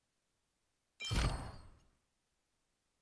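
A game menu plays a soft whooshing chime as it switches pages.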